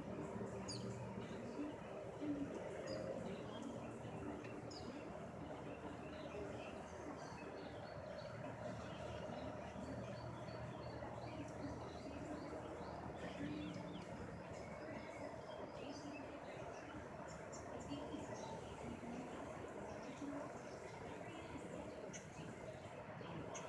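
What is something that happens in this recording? A small bird chirps softly nearby.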